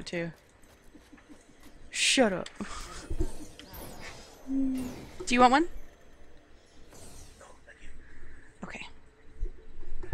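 A young woman speaks with animation close to a headset microphone.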